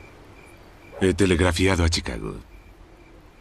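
A man speaks briefly in a low voice.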